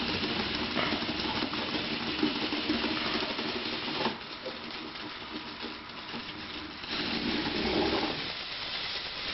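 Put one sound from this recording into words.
A small toy motor whirs as a tracked robot climbs a slope.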